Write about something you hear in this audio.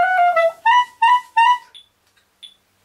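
A clarinet plays a few short, bright notes up close.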